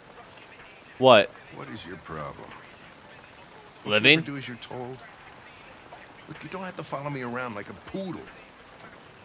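A man in his fifties speaks gruffly nearby.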